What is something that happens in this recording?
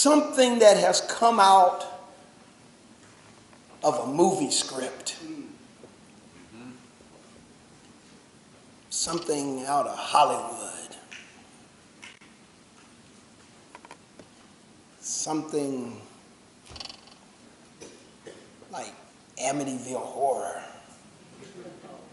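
A man preaches with feeling through a microphone, with long pauses between phrases.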